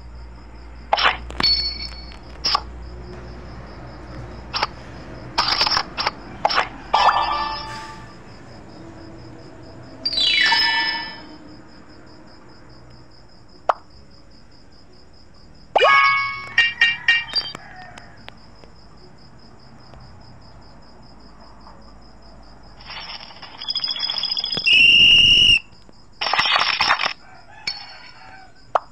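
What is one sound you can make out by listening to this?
Cards snap and flick quickly in a card game.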